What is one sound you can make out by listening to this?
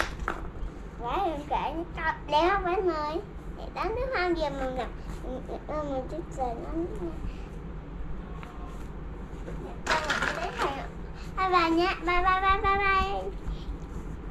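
A young girl speaks up close in a cheerful, sing-song voice.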